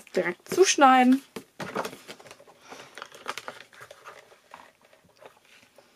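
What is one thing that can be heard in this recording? Thin card rustles and slides across a surface.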